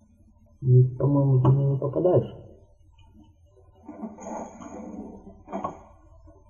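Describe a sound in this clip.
Armoured footsteps clank.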